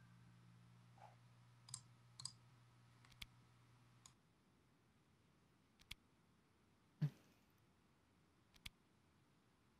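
Short interface clicks sound now and then.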